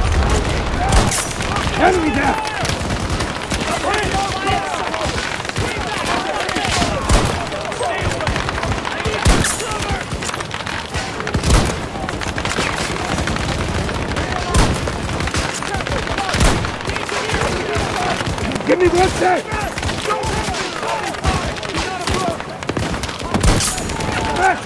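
A rifle fires loud single shots, each with a ringing echo.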